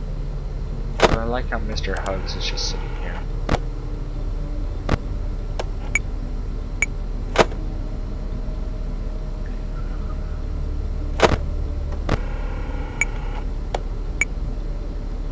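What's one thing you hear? Sharp clicks sound as a game switches between views.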